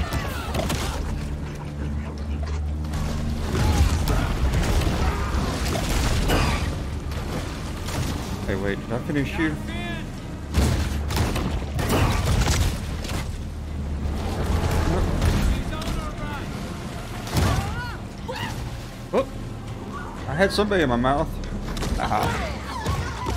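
Water splashes and churns as a shark swims.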